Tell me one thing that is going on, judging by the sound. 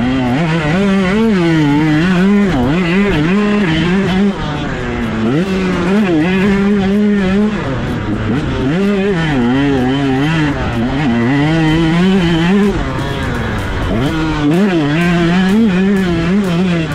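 A dirt bike engine revs loudly, rising and falling as the rider shifts gears.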